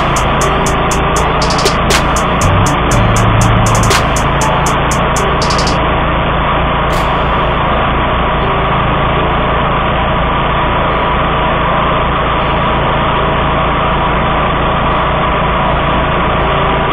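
A mower engine roars steadily close by.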